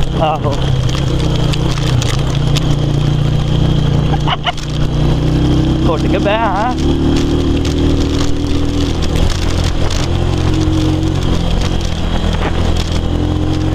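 A motorcycle engine drones loudly and steadily close by.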